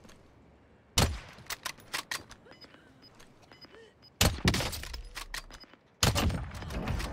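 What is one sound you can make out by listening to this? Loud rifle shots ring out in bursts.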